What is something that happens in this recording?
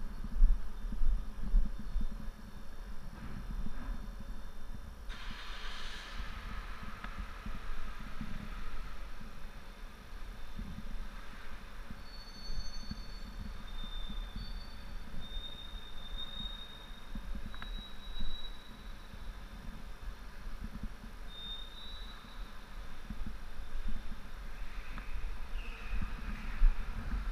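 A motorcycle engine idles with a low rumble, echoing in a large hollow space.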